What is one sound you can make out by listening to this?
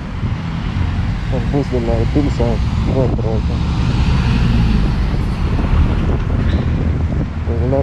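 A bus drives past nearby with a rumbling engine.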